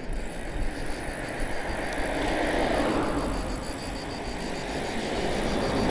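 A car approaches and passes by on the road.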